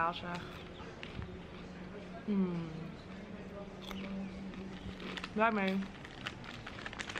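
A young woman crunches on crispy snacks close by.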